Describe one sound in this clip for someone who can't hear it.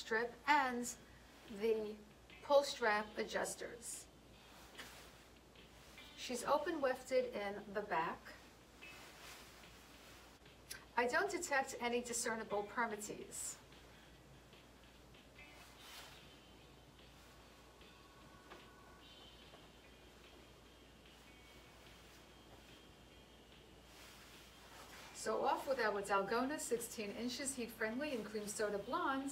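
A woman speaks with animation close to a microphone, in short bursts with pauses.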